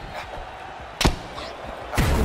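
A punch lands with a sharp thud.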